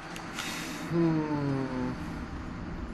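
A large beast lets out a deep, falling growl.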